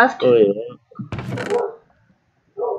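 A wooden chest creaks open.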